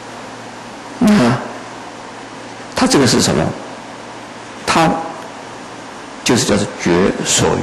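An elderly man speaks calmly and slowly into a microphone, in short phrases with pauses.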